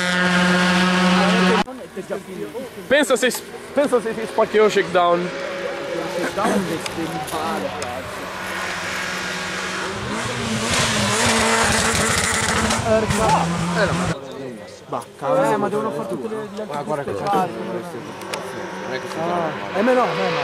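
A car engine roars as the car approaches and passes close by.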